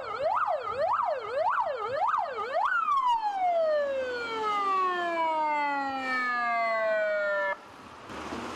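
An ambulance siren wails loudly nearby, rising and falling fast, then in slow long sweeps.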